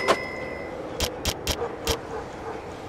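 Short electronic clicks tick in quick succession.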